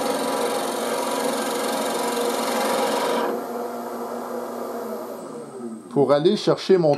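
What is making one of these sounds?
A lathe motor hums steadily, then winds down.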